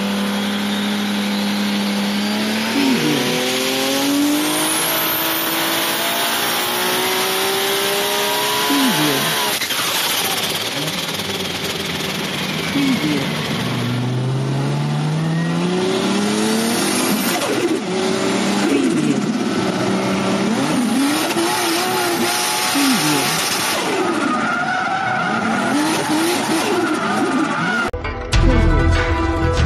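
Toy race car engines whine and rev up and down.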